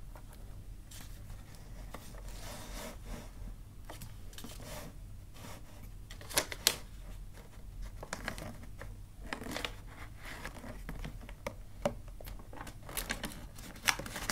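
Plastic wrapping crackles as a gift is wrapped.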